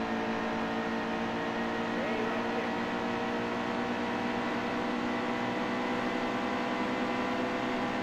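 A race car engine roars steadily at high revs.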